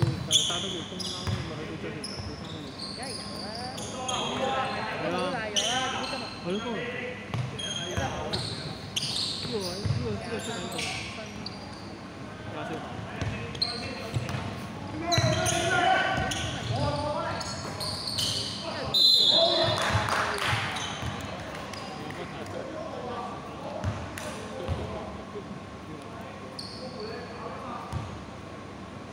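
Sneakers squeak sharply on a wooden court in a large echoing hall.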